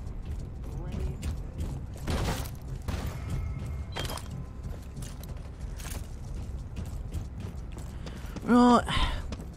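Footsteps thud and clatter on metal.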